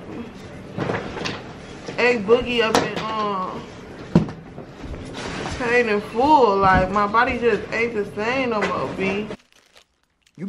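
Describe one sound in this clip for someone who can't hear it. A young woman talks calmly.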